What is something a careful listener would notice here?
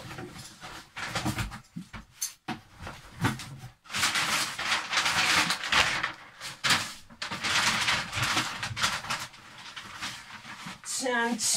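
Cardboard and packing paper rustle and crinkle up close.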